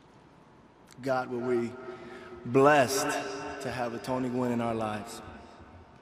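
A man speaks with emotion into a microphone, heard over loudspeakers outdoors.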